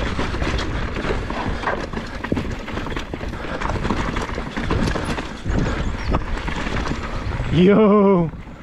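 Bike tyres rumble and rattle over a rough dirt trail.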